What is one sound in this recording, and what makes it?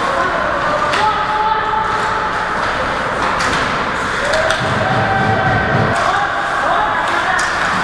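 Men shout to each other across the ice.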